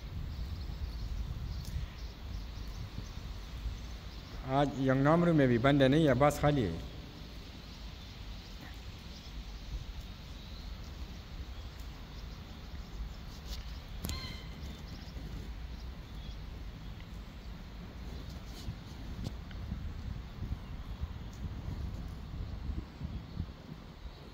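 A river flows quietly nearby.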